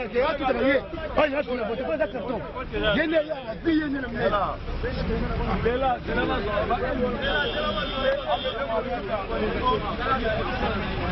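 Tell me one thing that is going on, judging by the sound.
Several men talk at once in the background.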